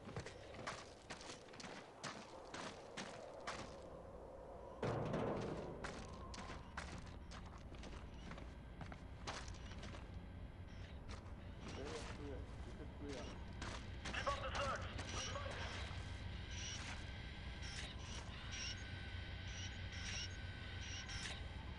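Footsteps crunch softly on dirt and gravel.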